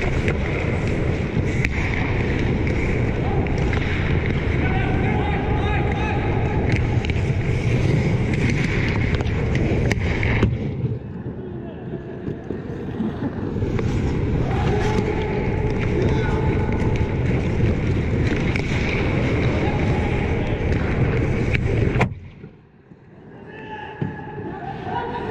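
Skate blades scrape and carve across ice close by.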